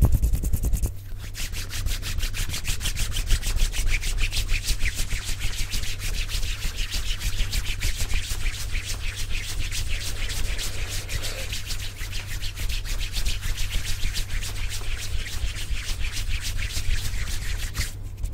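Hands rub together rapidly right at a microphone, making a dense crisp rustling.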